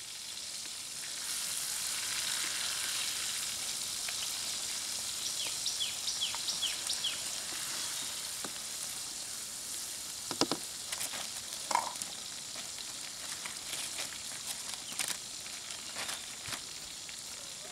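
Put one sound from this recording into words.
Food sizzles and hisses steadily in a hot pan.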